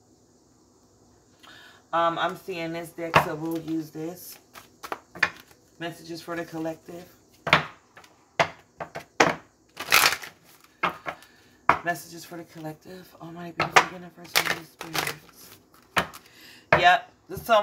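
A hand shuffles and lays down playing cards.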